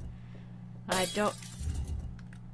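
A glass bottle drops and clatters to the floor.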